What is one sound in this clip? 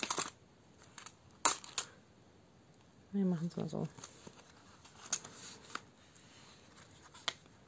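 Coins clink against each other.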